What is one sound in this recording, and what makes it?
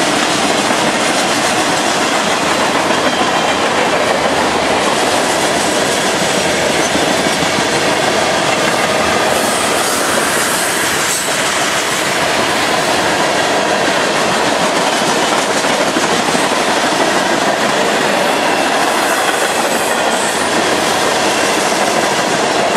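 A long freight train rumbles and clatters past close by.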